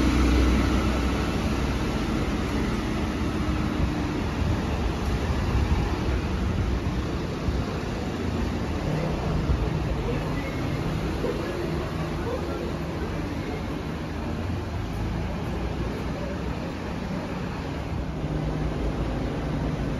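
Traffic hums along a street outdoors.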